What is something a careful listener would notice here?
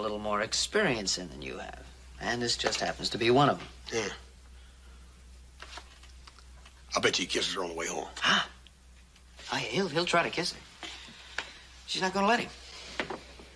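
A middle-aged man speaks forcefully and with animation, close by.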